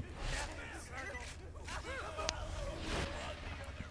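An energy gun fires in sharp bursts.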